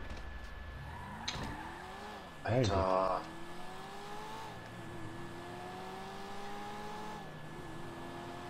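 A sports car engine roars as the car accelerates through the gears.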